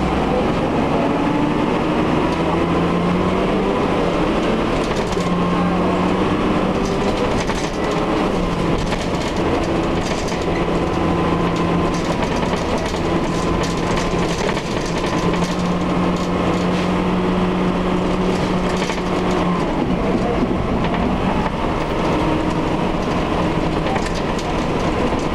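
A bus engine rumbles and whines steadily as the bus drives along.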